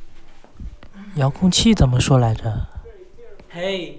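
A young man laughs loudly nearby.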